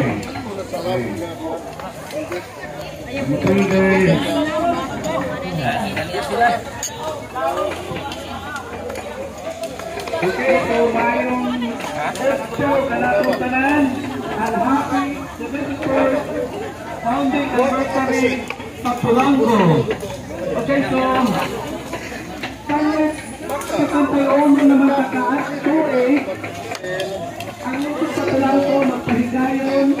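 Women chat in a busy crowd in the background.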